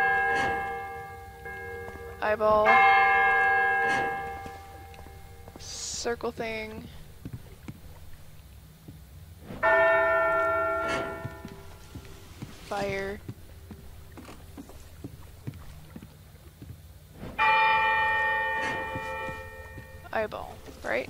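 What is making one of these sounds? A large bell rings out loudly again and again, each stroke slowly fading.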